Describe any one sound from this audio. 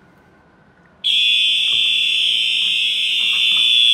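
A fire alarm blares loudly and steadily.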